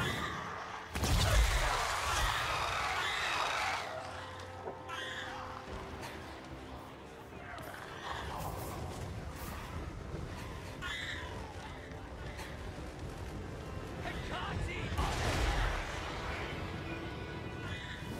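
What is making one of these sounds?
Battle noise and magic blasts roar.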